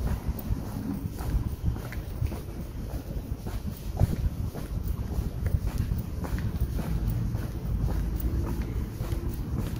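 Footsteps tread steadily on a paved lane.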